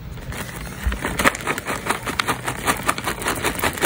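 Small hard candies rattle and patter as they pour out.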